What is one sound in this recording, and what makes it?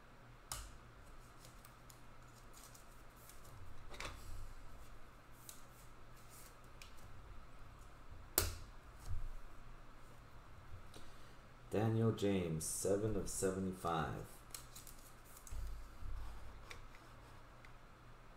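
Plastic card wrappers crinkle and rustle in hands.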